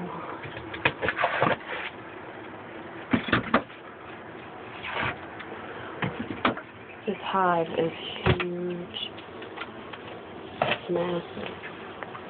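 A tool scrapes and knocks against a wall.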